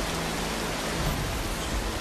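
A handheld device hisses with loud static.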